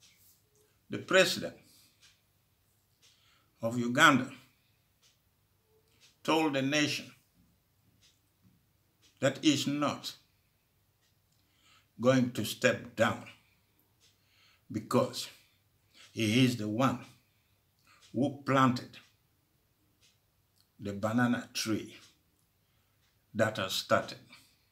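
An elderly man speaks slowly in short phrases with long pauses, close to a microphone.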